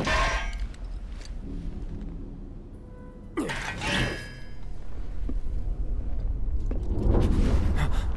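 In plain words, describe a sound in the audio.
A sword swishes and clangs against metal.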